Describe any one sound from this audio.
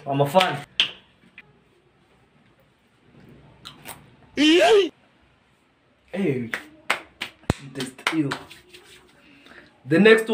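A young man talks and laughs with animation close by.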